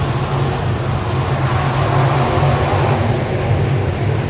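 A car engine swells and fades as it passes close by.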